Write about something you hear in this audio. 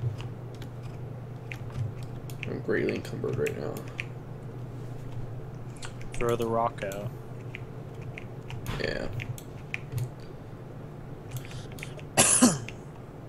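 A pickaxe chips at blocks with quick, light clicks.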